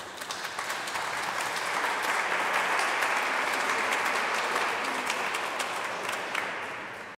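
A mixed choir makes a swelling wash of breathy, hissing sounds with soft clicks.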